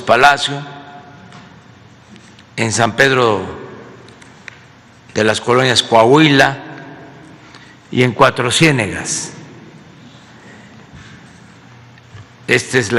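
An elderly man speaks slowly into a microphone, with long pauses between phrases.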